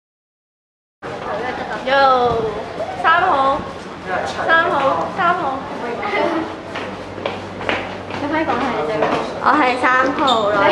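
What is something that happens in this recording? A group of teenagers talk and shout excitedly up close.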